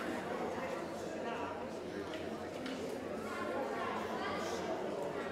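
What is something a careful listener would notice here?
Many people chat quietly in a large echoing hall.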